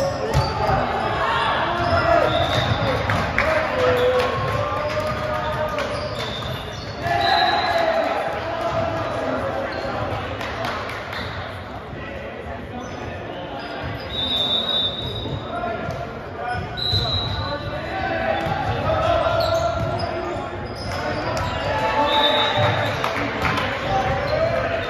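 Young men call out and chatter in a large echoing gym.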